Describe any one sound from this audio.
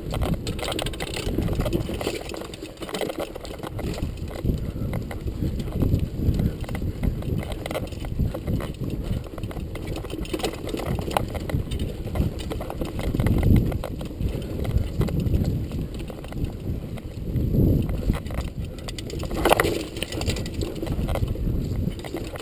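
A bicycle chain and frame rattle over bumps.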